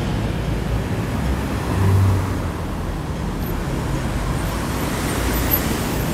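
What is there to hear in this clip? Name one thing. Car engines hum and tyres roll past on a street outdoors.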